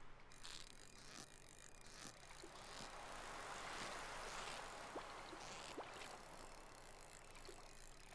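A fishing reel whirs and clicks as a line is pulled in.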